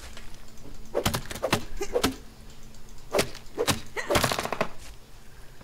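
An axe chops through a thick grass stalk.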